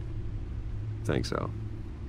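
A man speaks in a deep, quiet voice.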